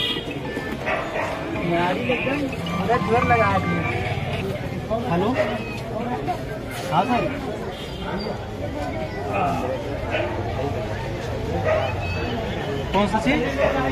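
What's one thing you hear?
A crowd of men talks and shouts excitedly close by.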